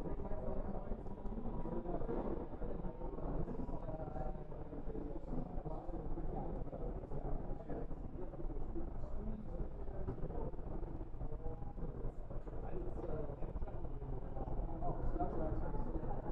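A small model train hums and clicks softly along its track.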